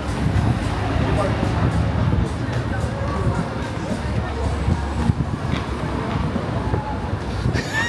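Traffic hums on a nearby street.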